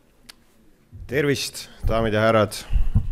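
A young man speaks into a microphone, amplified over loudspeakers.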